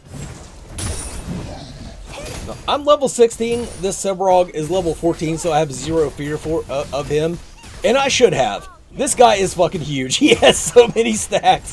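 Weapons clash and spells burst in a fast fight.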